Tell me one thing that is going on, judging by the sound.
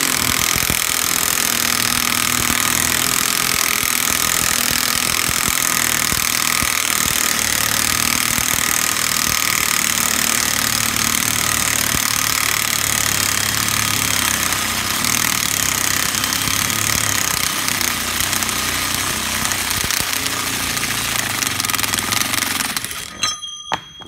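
A power tool whirs steadily, then stops.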